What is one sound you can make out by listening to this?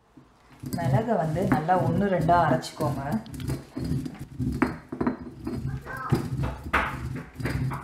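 A stone roller crushes peppercorns on a grinding stone with a gritty crunching.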